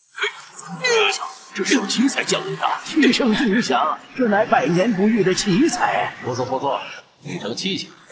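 A middle-aged man speaks in wonder.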